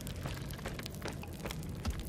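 Footsteps crunch on a dirt floor.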